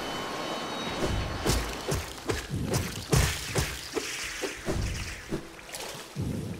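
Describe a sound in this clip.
Sharp game hits crack and clash.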